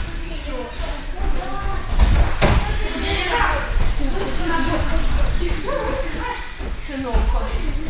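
Children talk and call out in a large room.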